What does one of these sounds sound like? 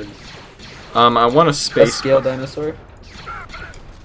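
A blaster rifle fires rapid laser shots.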